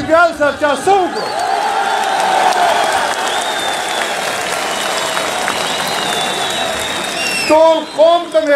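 A crowd cheers and chants loudly outdoors.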